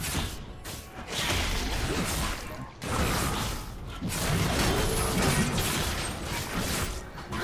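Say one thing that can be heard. Sword strikes clash in quick bursts.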